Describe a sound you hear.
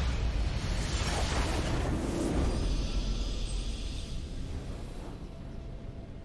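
A booming, shimmering game sound effect swells and then fades.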